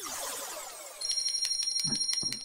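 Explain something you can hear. Bright electronic chimes ring out in quick succession.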